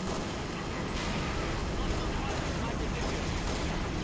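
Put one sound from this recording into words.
Guns fire in short bursts of loud shots.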